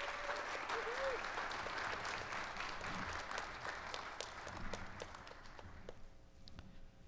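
A small crowd claps.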